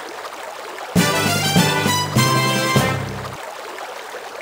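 A short cheerful jingle plays.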